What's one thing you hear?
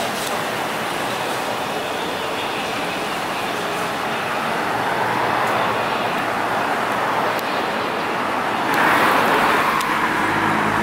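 A trolleybus whirs softly as it pulls away.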